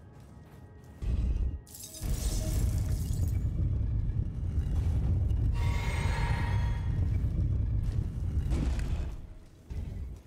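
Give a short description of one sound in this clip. A heavy blade swings with a loud whoosh.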